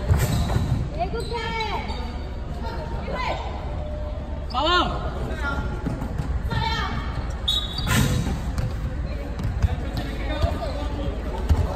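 Young women call out and shout to each other in a large echoing hall.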